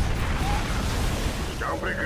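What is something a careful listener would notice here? A laser beam hums as it fires.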